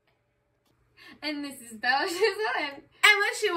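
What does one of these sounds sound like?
Teenage girls sing loudly and cheerfully close by.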